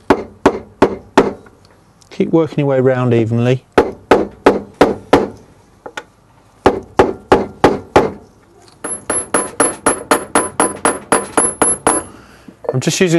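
Metal taps sharply as a hammer strikes a steel punch.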